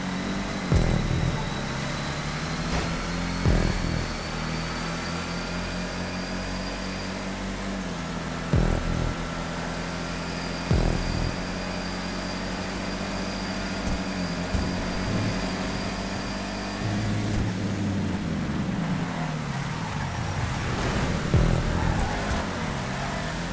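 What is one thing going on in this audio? A car engine roars steadily as it races, shifting gears now and then.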